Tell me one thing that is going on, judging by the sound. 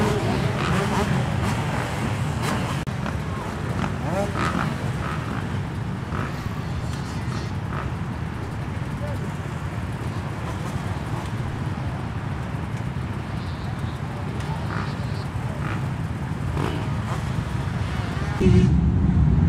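A motorbike engine idles with a low rumble.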